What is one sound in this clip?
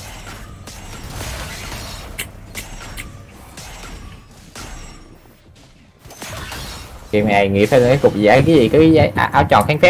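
Game sound effects of spells and hits play in quick bursts.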